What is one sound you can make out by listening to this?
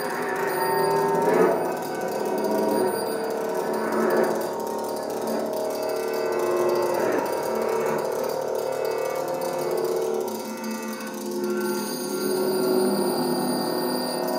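Electronic tones hum and shift steadily.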